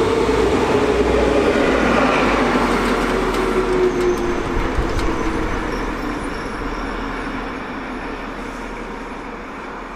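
A diesel locomotive engine rumbles as it passes close by and fades into the distance.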